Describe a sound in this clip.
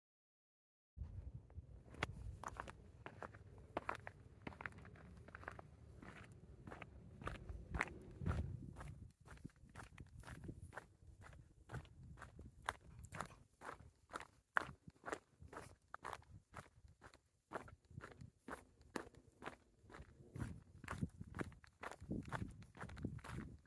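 Footsteps crunch along a gritty paved path.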